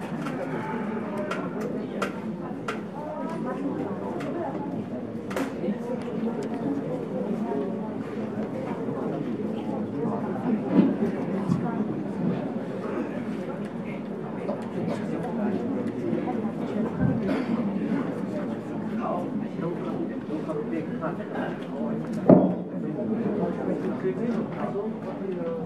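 A seated audience murmurs and chatters in a large echoing hall.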